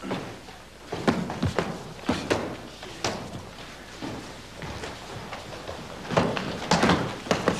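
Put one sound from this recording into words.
A fist thuds against a striking pad.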